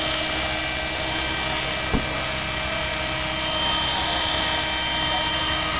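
A model helicopter's electric motor whines steadily at a high pitch.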